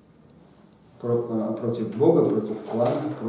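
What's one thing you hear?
A middle-aged man speaks calmly through a clip-on microphone.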